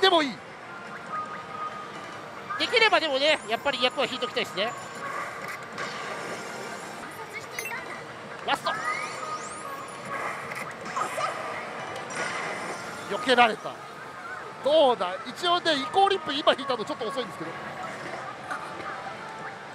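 A slot machine plays jingles and electronic sound effects.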